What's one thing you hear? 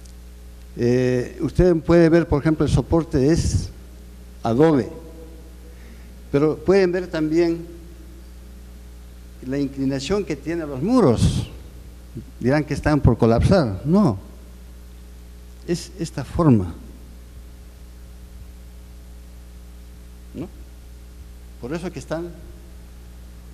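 A man speaks calmly through a microphone, with pauses between phrases.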